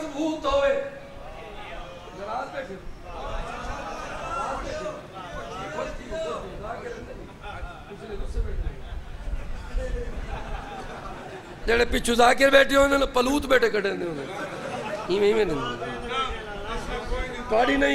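A man recites in a melodic chant through a loudspeaker in a large echoing hall.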